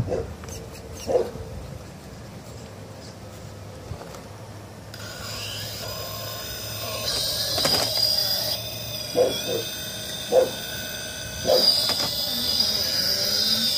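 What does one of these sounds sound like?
Plastic tyres scrape and knock against rocks.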